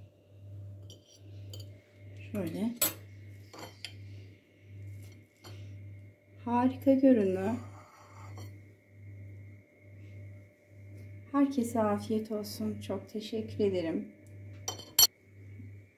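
A metal fork clinks and scrapes against a china plate.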